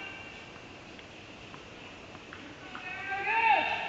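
A tennis ball is struck with a racket in a quick rally, echoing in a large indoor hall.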